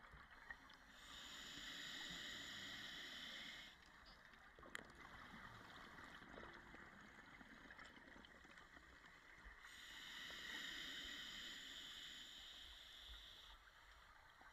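Air bubbles from a diver's breathing gurgle and rush loudly underwater in long bursts.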